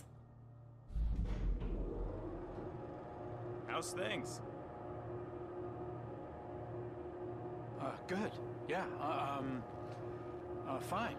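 An elevator hums as it moves.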